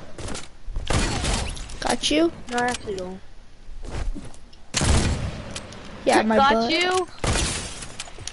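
Gunshots crack in loud bursts.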